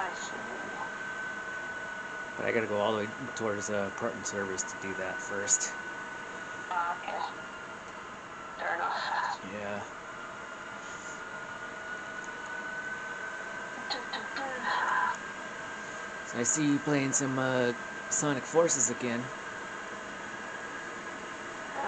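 Electronic game sounds hum steadily from a television speaker.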